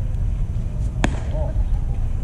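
A baseball bat cracks sharply against a ball.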